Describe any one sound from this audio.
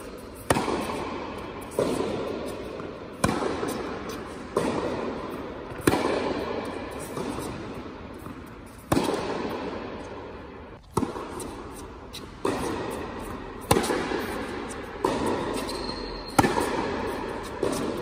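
Sneakers squeak and shuffle on the court.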